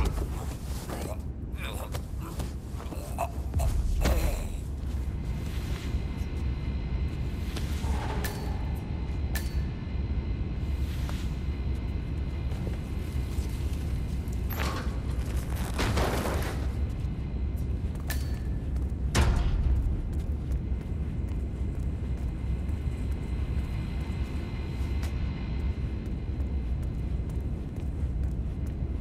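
A low steady hum fills the room.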